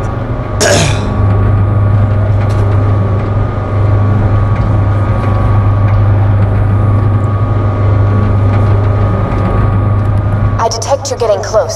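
A lift hums and rumbles steadily as it rises.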